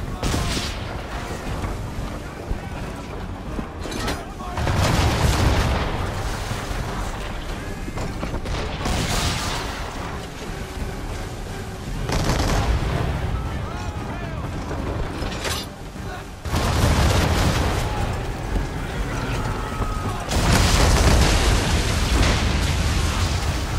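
Waves rush and splash against a sailing ship's hull.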